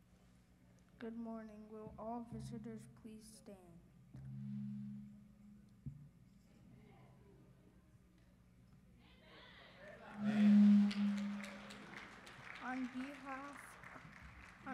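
A young boy speaks softly through a microphone.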